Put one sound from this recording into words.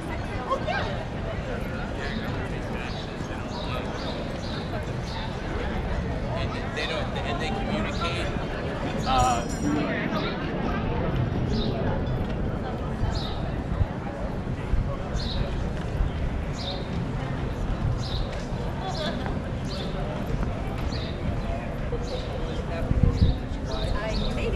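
Footsteps tap steadily on a brick pavement.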